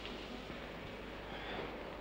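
Footsteps cross a hard floor.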